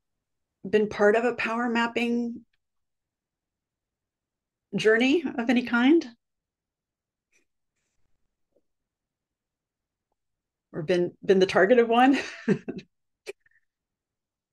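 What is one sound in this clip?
A woman speaks calmly over an online call, in short bursts with pauses.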